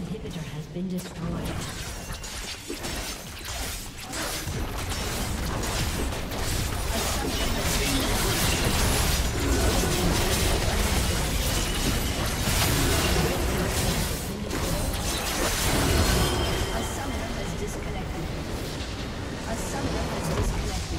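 Spell effects and weapon impacts clash and crackle in a busy game battle.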